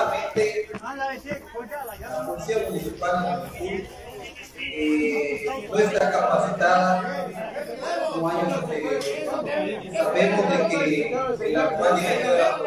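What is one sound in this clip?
A crowd of men and women talks and shouts close by.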